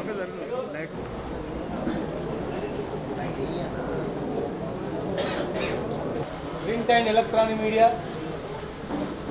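A man speaks into microphones in a steady, serious voice.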